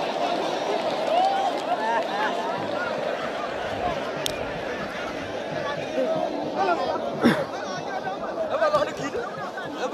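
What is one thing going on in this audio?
Men shout excitedly nearby.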